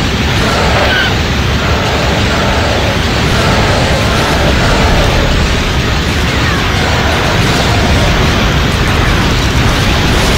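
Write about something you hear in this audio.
Explosions boom and roar.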